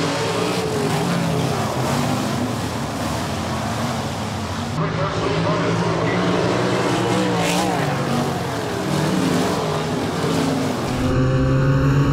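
Race car engines roar around a dirt track outdoors.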